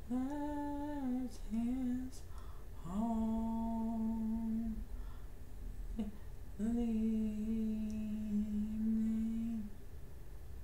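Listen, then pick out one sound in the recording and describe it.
A man sings long, held notes close by.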